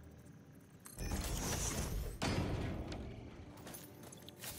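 A machine whooshes and thuds as it is set in place.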